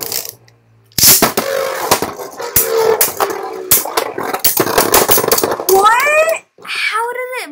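Spinning tops clash and clatter against each other.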